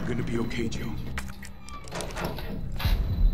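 A man speaks softly and reassuringly.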